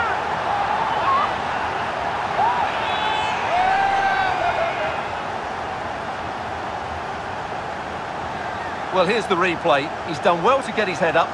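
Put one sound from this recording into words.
A large stadium crowd cheers and chants in a steady roar.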